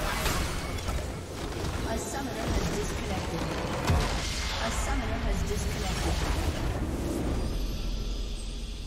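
A large structure explodes with a loud, rumbling blast.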